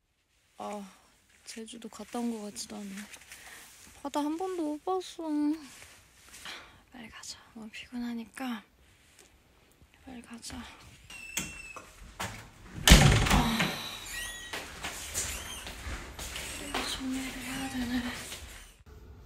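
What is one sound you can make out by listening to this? A young woman talks casually and softly, close by.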